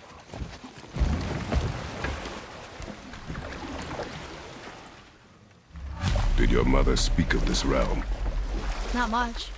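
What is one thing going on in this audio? Water splashes and laps against a wooden boat.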